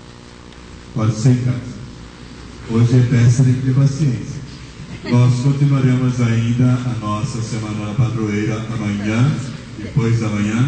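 A man sings through a loudspeaker in an echoing hall.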